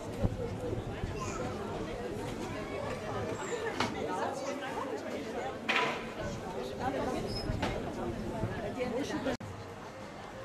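A crowd of men and women chatters close by outdoors.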